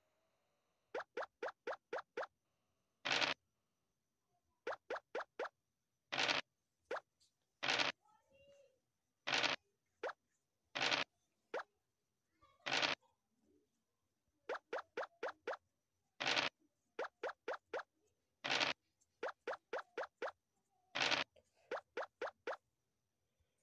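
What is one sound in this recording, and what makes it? Game pieces tap quickly from square to square.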